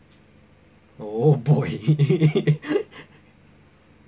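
A young man laughs loudly, close by.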